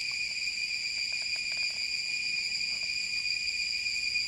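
A man slurps a drink.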